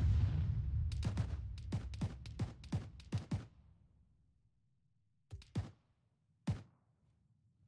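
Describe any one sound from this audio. Footsteps crunch on snowy ground.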